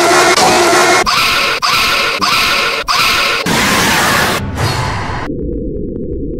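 A mechanical creature lets out a loud, harsh screech.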